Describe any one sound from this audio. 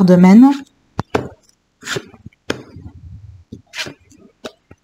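Playing cards slap softly onto a table.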